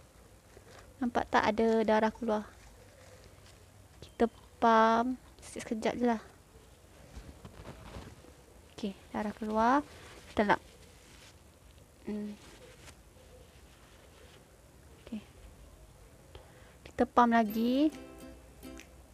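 A young woman speaks in short bursts close to a microphone.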